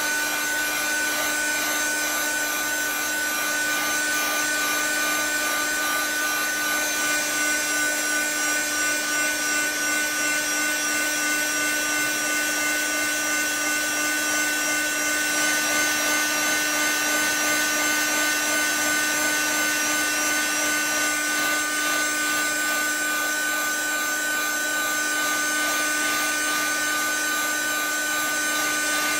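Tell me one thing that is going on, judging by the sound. A heat gun blows and hums steadily up close.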